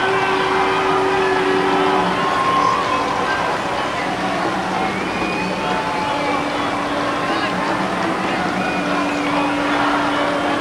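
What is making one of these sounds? Young men shout to each other across an open field outdoors, heard from a distance.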